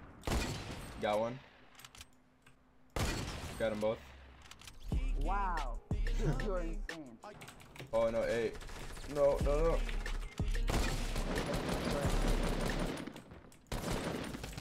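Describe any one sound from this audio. Gunshots crack rapidly from a game.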